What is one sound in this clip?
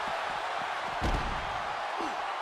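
A body slams hard onto the floor with a heavy thud.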